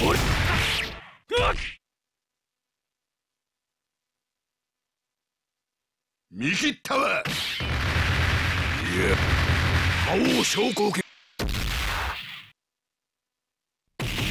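Game fighters trade punches and kicks with sharp impact sounds.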